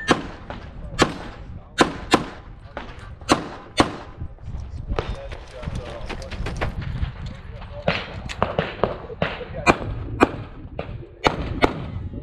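Gunshots crack sharply in quick bursts outdoors, echoing slightly.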